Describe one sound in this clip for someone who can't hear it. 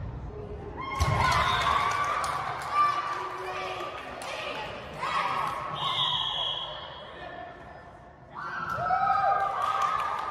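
Young women players call out and shout to each other in an echoing gym.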